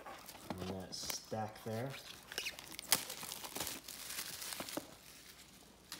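A cardboard box scrapes and knocks on a hard countertop.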